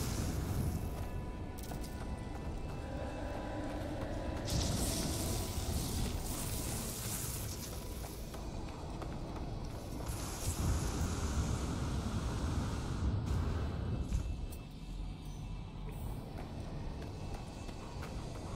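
Wind roars and gusts in a sandstorm.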